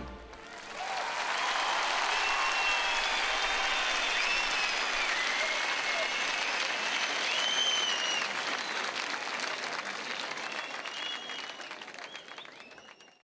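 A large crowd cheers and whistles loudly in a big echoing hall.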